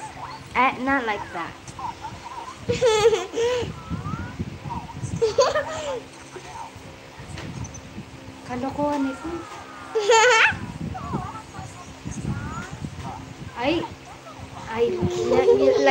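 A woman laughs and talks softly close by.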